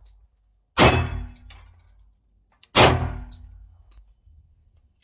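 A pistol fires two loud shots that ring out outdoors.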